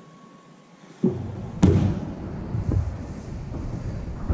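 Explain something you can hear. Feet and hands thud onto a wooden floor in an echoing room.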